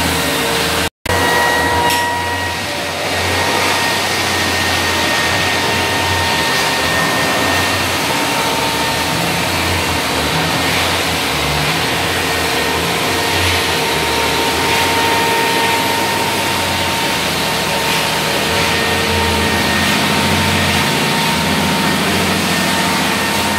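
A floor sanding machine drones loudly and steadily.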